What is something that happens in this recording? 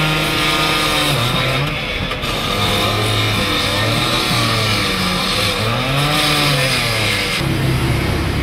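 A power saw grinds loudly through metal.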